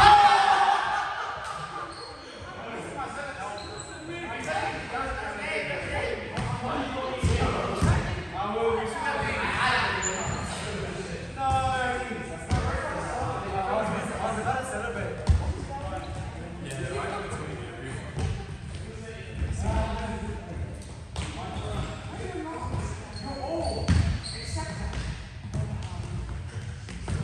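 Young men and women shout and call out to each other in a large echoing hall.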